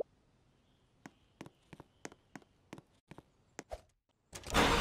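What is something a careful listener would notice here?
Light footsteps patter quickly.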